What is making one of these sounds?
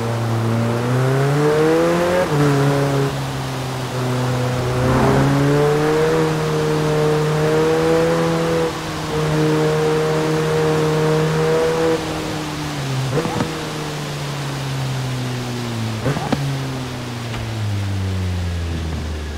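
A sports car engine roars loudly, rising and falling in pitch as it shifts gears.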